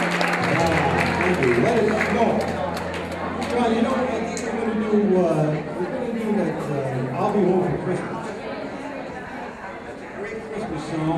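A man speaks into a microphone over loudspeakers in a large room.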